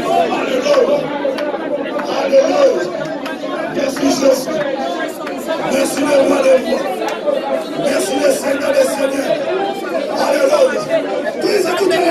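A group of men and women sing together in a small room.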